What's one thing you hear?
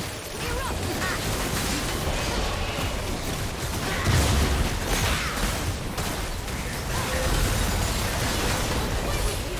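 Video game characters' weapons clash and strike.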